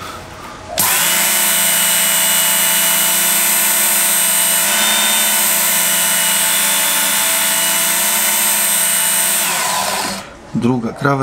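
An electric sharpener whines loudly and steadily as a blade grinds against it.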